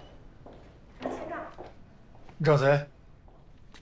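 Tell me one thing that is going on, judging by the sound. A middle-aged man speaks briefly.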